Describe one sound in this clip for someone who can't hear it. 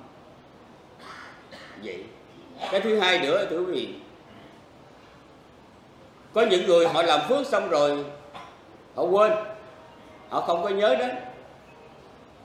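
An elderly man speaks calmly into a microphone, with pauses between phrases.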